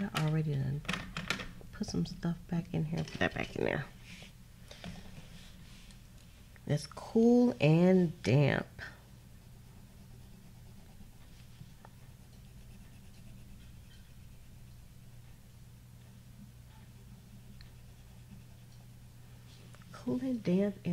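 A coloured pencil scratches softly on paper.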